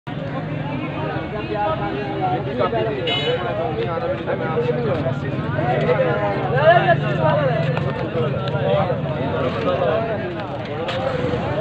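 Many men talk at once all around, close by, in a busy outdoor crowd.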